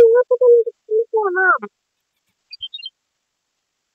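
A video game plays short electronic sound effects.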